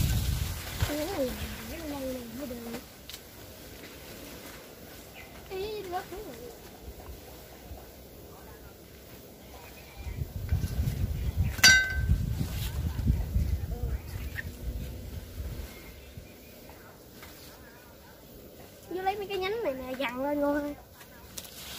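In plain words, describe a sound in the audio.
A child talks nearby.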